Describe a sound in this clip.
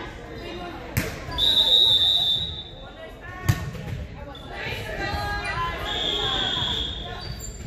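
Young women call out and cheer in a large echoing gym.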